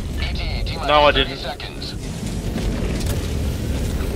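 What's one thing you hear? An aircraft engine roars overhead.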